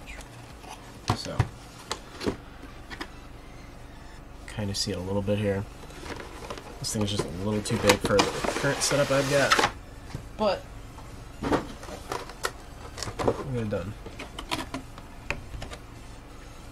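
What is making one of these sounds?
A plastic-wrapped box rustles and crinkles as hands handle it.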